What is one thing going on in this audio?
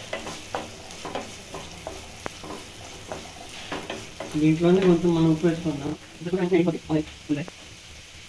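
A metal lid clinks onto a pan.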